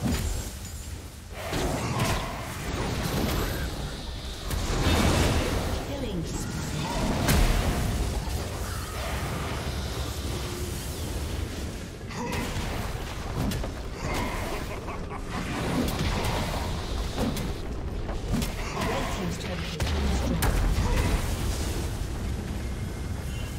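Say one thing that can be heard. Game spell blasts and clashing hits burst in quick succession.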